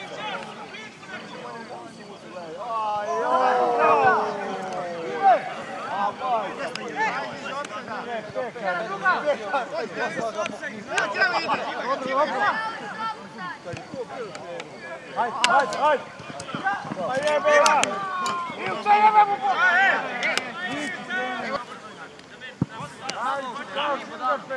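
Men shout and call out across an open field.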